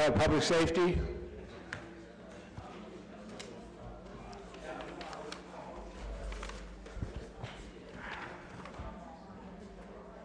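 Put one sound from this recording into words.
People murmur and talk quietly in the background.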